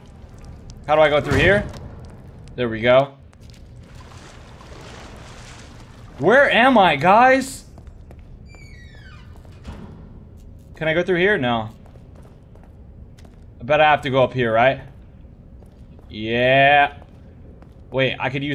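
A young man talks with animation through a close microphone, in short bursts.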